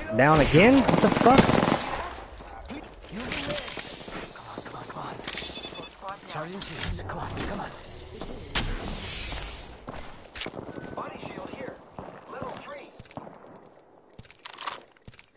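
Electronic game sound effects whoosh and clang in short bursts.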